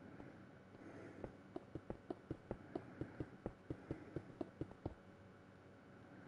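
Footsteps tap quickly across stone.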